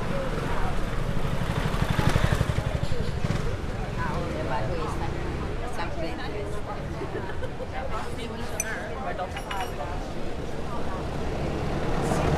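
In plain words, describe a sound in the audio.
People chatter nearby at outdoor tables.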